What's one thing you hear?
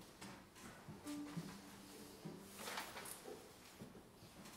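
A violin and a cello play softly.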